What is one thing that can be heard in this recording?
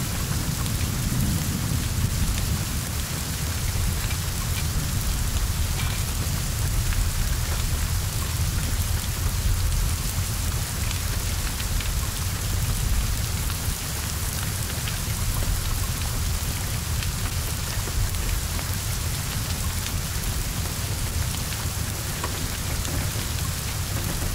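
Flames roar and crackle from a burning car.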